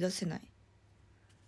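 A young woman speaks briefly, close to the microphone.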